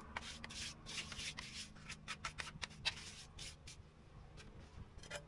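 A rubber mallet taps on tile.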